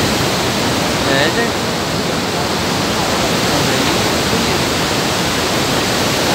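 A waterfall roars loudly and steadily close by.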